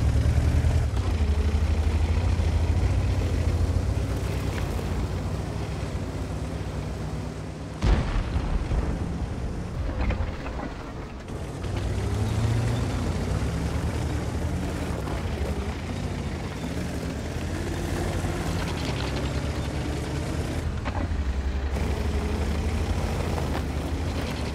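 Tank tracks clatter and squeak.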